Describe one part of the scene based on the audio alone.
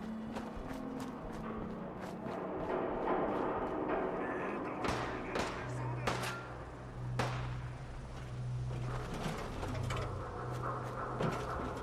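Footsteps crunch on gravel and debris.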